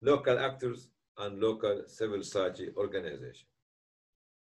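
An older man speaks calmly into a microphone on an online call.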